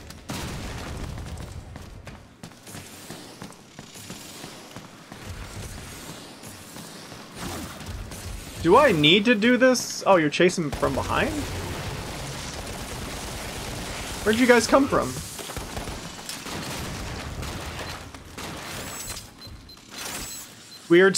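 Gunfire rattles rapidly in a video game.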